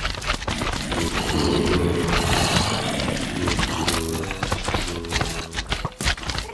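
Zombies groan in low, rasping moans.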